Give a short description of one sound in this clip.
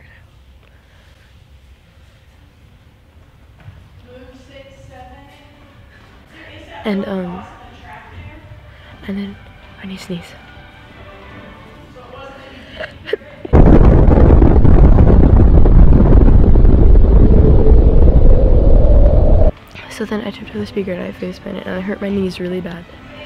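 A teenage girl talks close by with animation.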